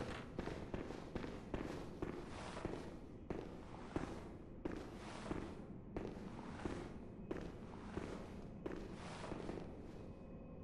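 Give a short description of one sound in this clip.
Footsteps climb stone stairs.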